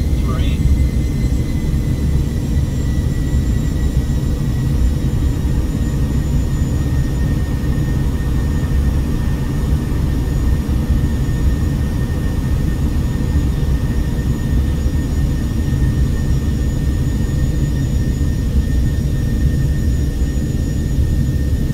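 A high engine whine hums steadily.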